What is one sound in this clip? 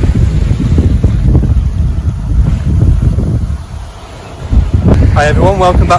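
Waves wash over a rocky shore.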